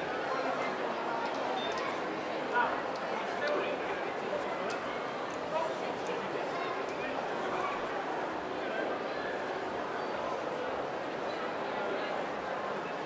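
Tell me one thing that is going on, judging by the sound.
Many voices murmur and chatter in a busy, echoing indoor space.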